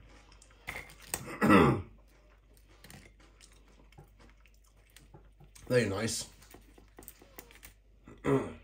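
Crispy fried food rustles and taps as a hand picks it up from a plate.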